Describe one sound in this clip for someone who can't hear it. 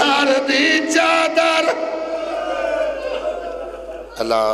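A man sings loudly into a microphone in a reverberant hall.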